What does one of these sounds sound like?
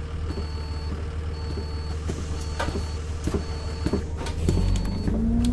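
A bus engine idles with a low hum.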